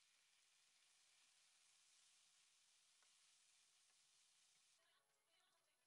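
A wooden spatula scrapes and stirs vegetables in a pan.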